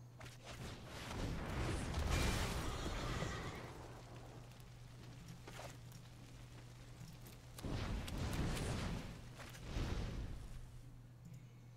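Fire roars and whooshes in short bursts.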